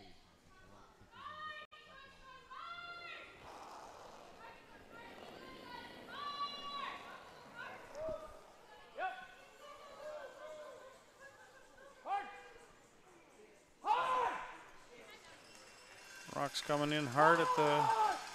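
Men shout loud, drawn-out calls across an echoing rink.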